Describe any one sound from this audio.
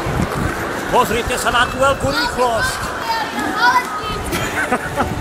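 A middle-aged man talks close up.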